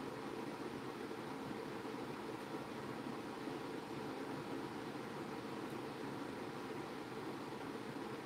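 A small brush strokes softly across a tile.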